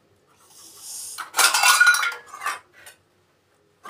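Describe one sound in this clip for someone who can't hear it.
Metal dishes clink and clatter together.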